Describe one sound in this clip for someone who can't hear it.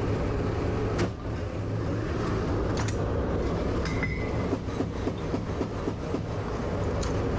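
A gun mount clanks and knocks as it swivels.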